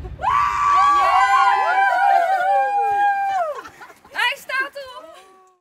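A group of young women sing and whoop loudly together outdoors.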